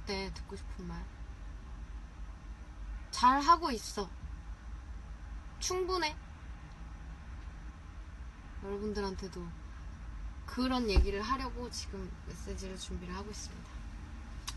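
A young woman speaks calmly and softly into a nearby microphone, with pauses.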